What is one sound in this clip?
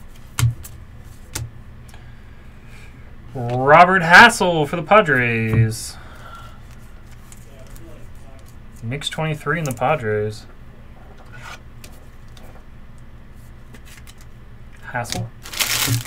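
Trading cards rustle and click as they are shuffled in hands.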